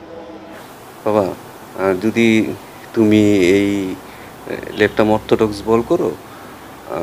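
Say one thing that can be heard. A man speaks calmly into a microphone up close.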